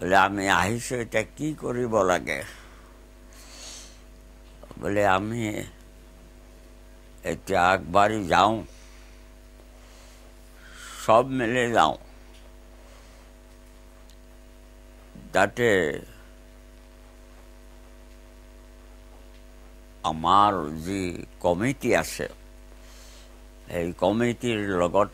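An elderly man speaks slowly and calmly, close to the microphone, with long pauses.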